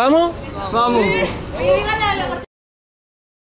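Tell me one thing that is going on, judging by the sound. Young people shout excitedly close by.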